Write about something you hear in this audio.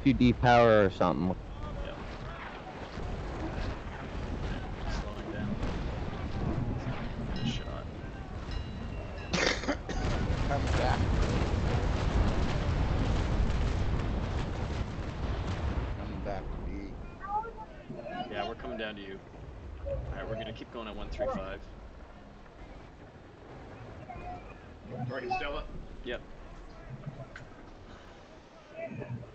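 Waves splash against a sailing ship's hull.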